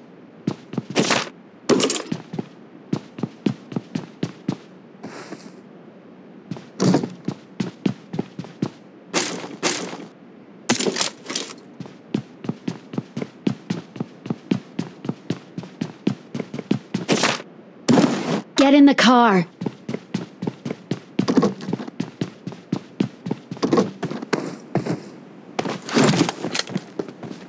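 Footsteps thud quickly on wooden floors and stairs.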